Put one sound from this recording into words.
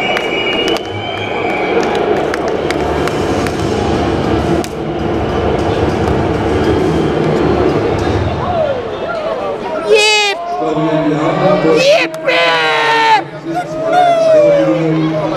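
A large crowd cheers and chatters in a big echoing arena.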